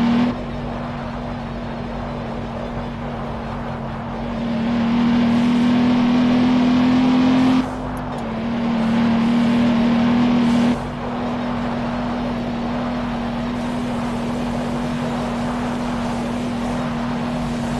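A car engine hums steadily, rising as it speeds up and dropping at gear changes.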